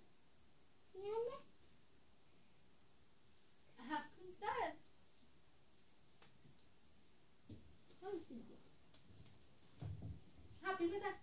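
A young girl speaks and exclaims in short bursts close by.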